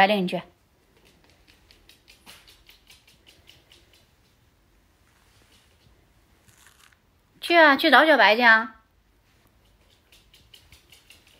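A small dog's claws tap and patter on a hard floor as it trots.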